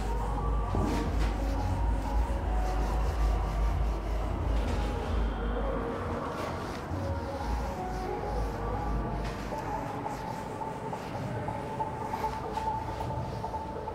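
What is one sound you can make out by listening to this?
A cloth rubs and wipes across a board.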